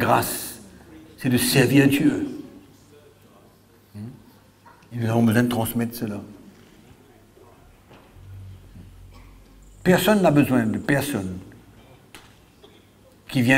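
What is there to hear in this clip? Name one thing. A middle-aged man speaks into a microphone in short, emphatic bursts, heard through a loudspeaker in a roomy hall.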